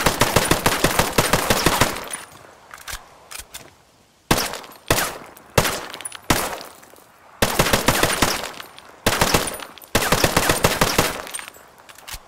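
A rifle fires in rapid bursts, echoing outdoors.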